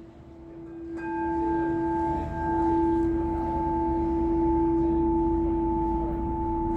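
A second crystal singing bowl rings with a steady, higher tone.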